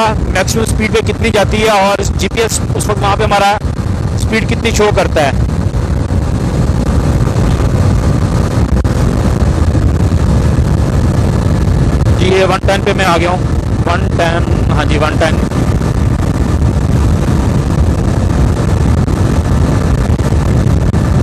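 A motorcycle engine drones steadily at high speed.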